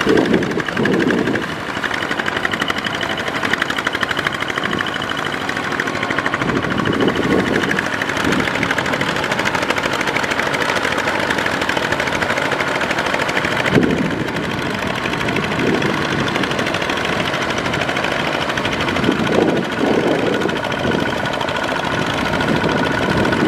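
Mud and water churn and splash under tractor wheels.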